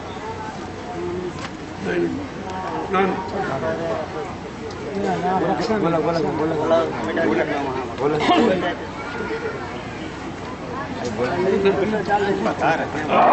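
Several men talk and murmur close by.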